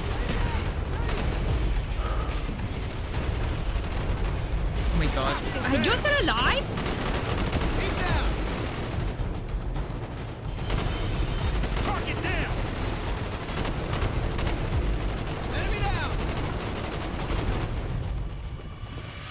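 Gunfire rattles and booms from a video game.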